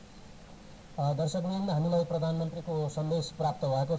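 A man reads out news calmly through a microphone.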